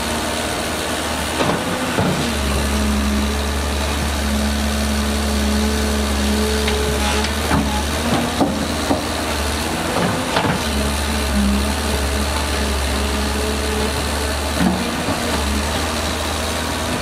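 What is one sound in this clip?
A diesel engine rumbles and idles steadily.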